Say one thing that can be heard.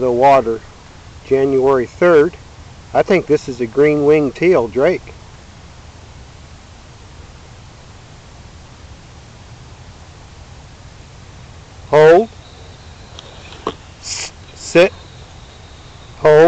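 A man calls out loudly close by.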